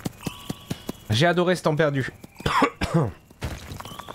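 A young man speaks into a nearby microphone with animation.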